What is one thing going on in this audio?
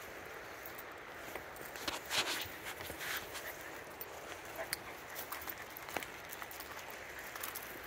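Small paws patter and scrape on gravel and leaves.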